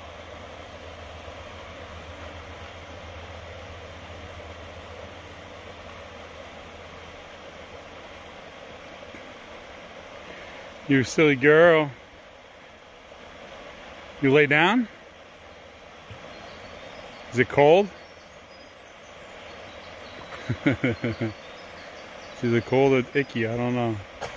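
A shallow river gently ripples and murmurs over stones.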